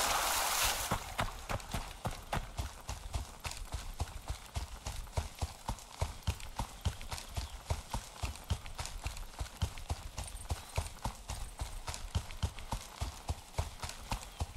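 Footsteps swish through tall grass at a steady pace.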